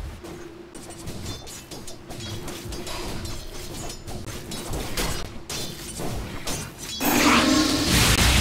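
Weapons clash in a chaotic fight.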